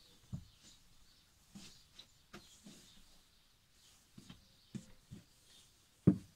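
Plastic bottles knock and bump.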